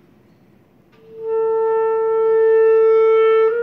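A clarinet plays a long, steady held note.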